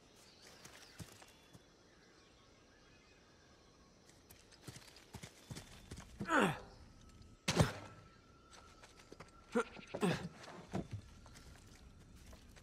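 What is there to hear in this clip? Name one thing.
Footsteps run on grass.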